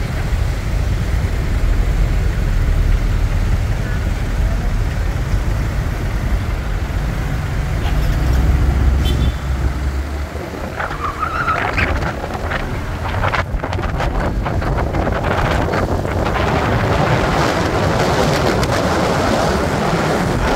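Tyres hiss along a wet road.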